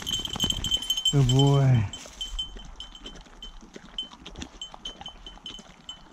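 A dog laps water.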